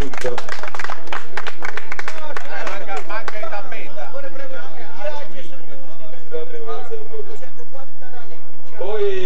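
A man speaks loudly to a gathering, heard through a microphone.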